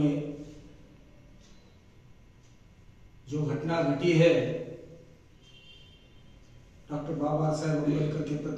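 A man speaks into a microphone in short bursts with pauses.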